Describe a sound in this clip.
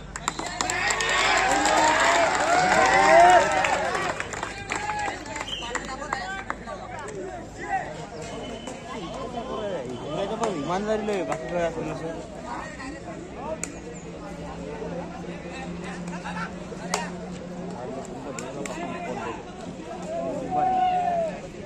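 A crowd of spectators shouts and cheers loudly outdoors.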